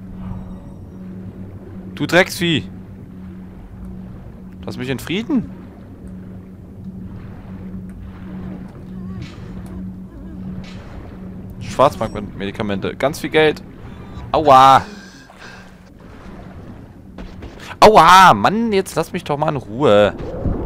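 Water gurgles and swirls in a low, muffled hum.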